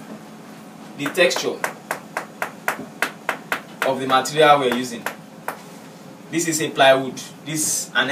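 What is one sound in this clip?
A young man speaks calmly into a clip-on microphone, close by.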